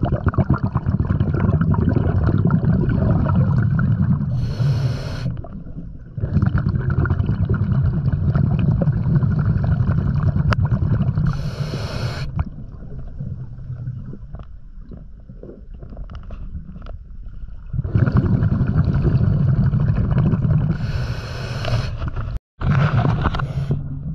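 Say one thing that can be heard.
Water rushes and rumbles in a low, muffled wash underwater.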